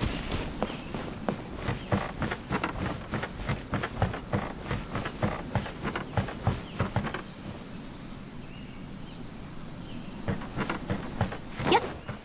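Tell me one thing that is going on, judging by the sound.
Quick footsteps run across wooden boards.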